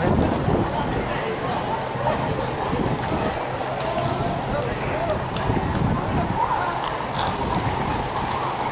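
A crowd murmurs outdoors nearby.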